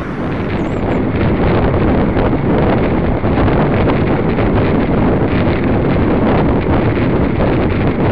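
Wind rushes and buffets loudly against a microphone.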